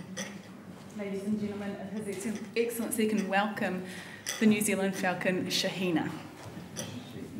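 A woman speaks clearly into a microphone in an echoing hall.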